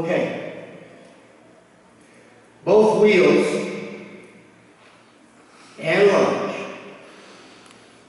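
A man speaks through a microphone in a large echoing hall, in short phrases with pauses.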